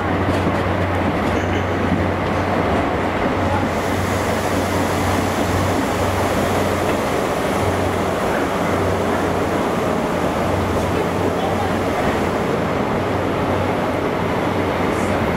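A train rumbles loudly as it pulls slowly along a platform.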